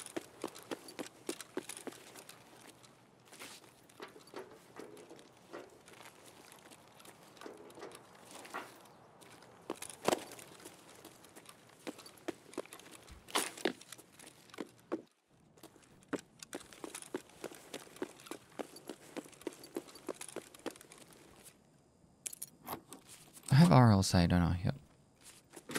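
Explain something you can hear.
Footsteps thud and crunch steadily.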